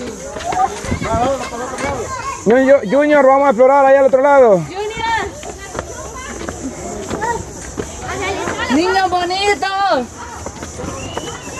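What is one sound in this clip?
A child slides down a concrete slide with a scraping rub.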